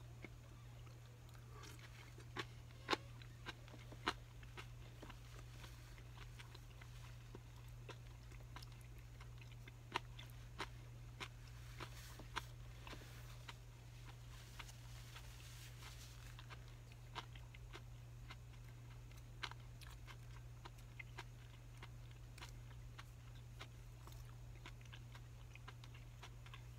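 Chopsticks clink and tap against a bowl, close by.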